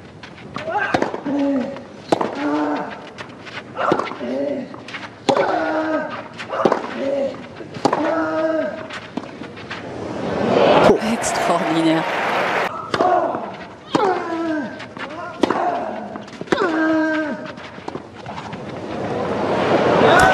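A tennis ball is struck hard with a racket again and again.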